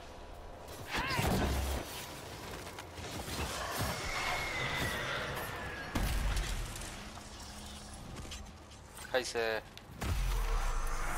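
Spell blasts burst with sharp booms.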